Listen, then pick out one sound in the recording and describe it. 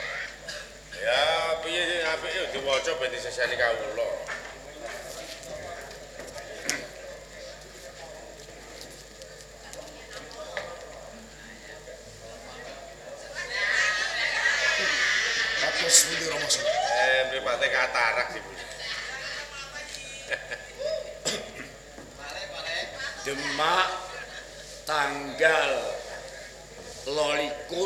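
A man speaks with animation through a microphone and loudspeakers.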